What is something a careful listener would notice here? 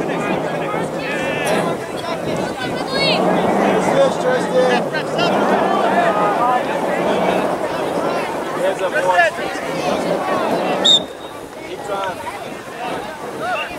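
A crowd of spectators chatters and calls out at a distance.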